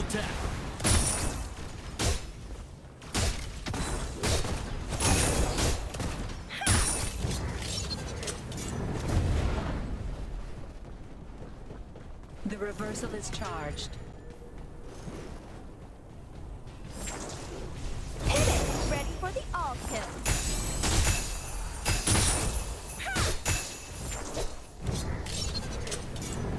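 Magic blasts crash and whoosh in loud bursts.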